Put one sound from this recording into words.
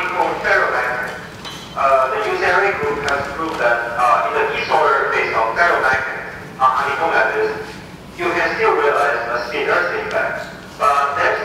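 A woman speaks calmly through an online call, heard over a loudspeaker.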